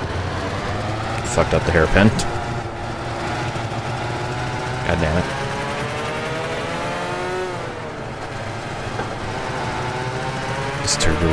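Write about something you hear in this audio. Small kart engines buzz steadily, rising and falling in pitch.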